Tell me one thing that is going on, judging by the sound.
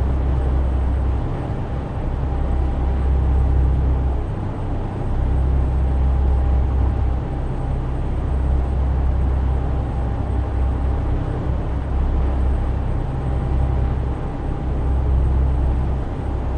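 A truck engine hums with a deep, steady drone.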